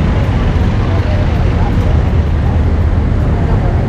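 A motor scooter hums as it rides by.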